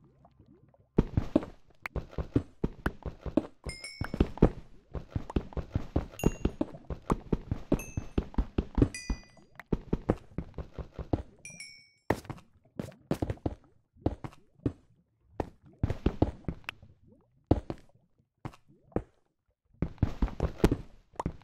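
Blocks crack and break in quick, repeated knocks.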